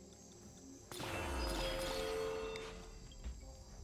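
A bright magical chime rings out as an upgrade is bought.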